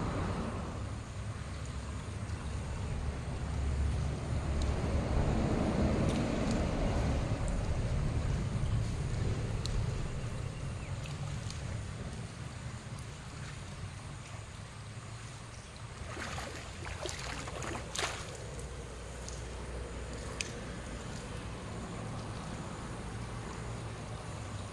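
River water flows past a shore.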